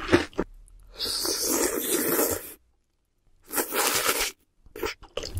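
A young woman slurps noodles loudly close to a microphone.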